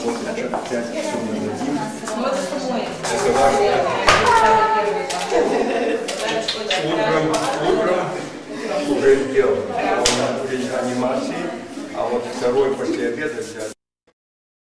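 A crowd of adults and children chatters.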